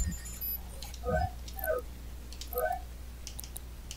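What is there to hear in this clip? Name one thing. Short soft electronic blips sound as menu items are selected.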